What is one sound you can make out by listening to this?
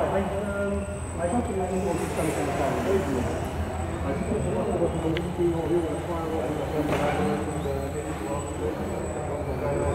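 A small model airplane motor whirs and buzzes overhead.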